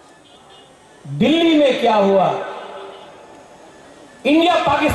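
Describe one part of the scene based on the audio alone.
A man speaks loudly and with emotion into a microphone over a loudspeaker.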